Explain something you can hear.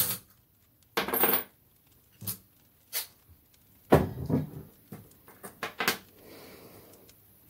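A small object clicks down onto a table.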